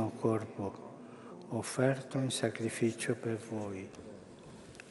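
An elderly man chants calmly into a microphone in a large echoing hall.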